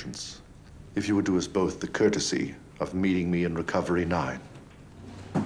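An elderly man speaks slowly and gravely, close by.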